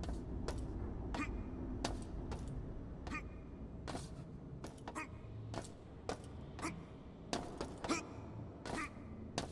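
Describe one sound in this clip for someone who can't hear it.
Footsteps clank on a metal floor at a steady pace.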